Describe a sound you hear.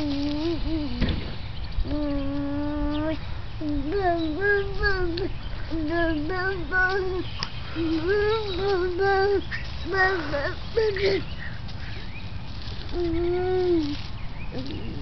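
A baby babbles and coos up close.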